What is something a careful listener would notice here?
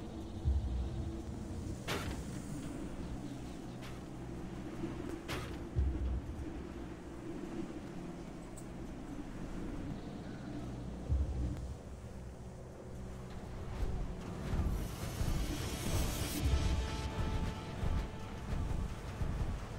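Heavy metal footsteps of a giant walking robot thud and clank.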